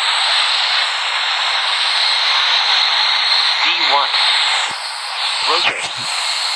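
The jet engines of a twin-engine airliner roar.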